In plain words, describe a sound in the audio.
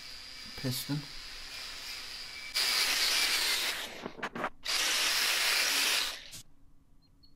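An angle grinder whines as it grinds metal.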